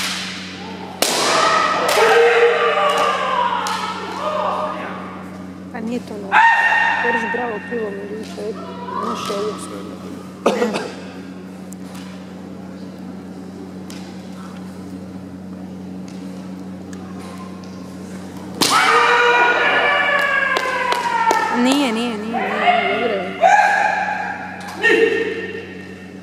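Masked kendo fencers shout sharp battle cries in an echoing hall.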